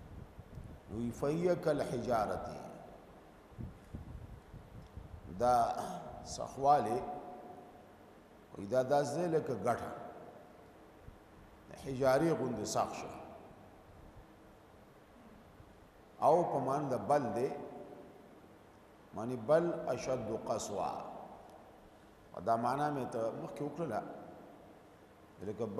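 A middle-aged man recites in a slow, melodic chant into a microphone, in phrases with pauses between them.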